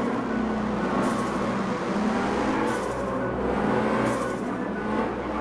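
A small car engine revs steadily.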